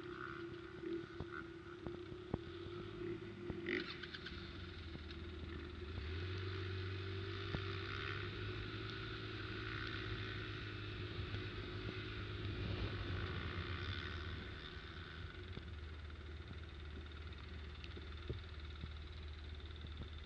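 A quad bike engine hums steadily up close.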